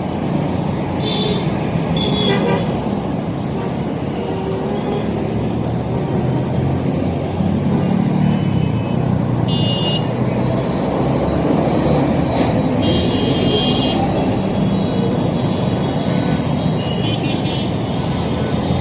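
Horns honk repeatedly.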